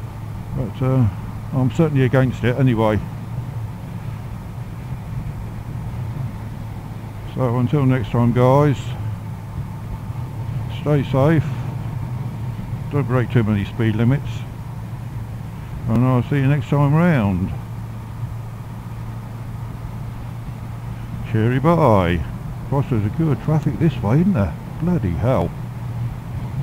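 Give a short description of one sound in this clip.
A man talks calmly in short bursts through a helmet microphone.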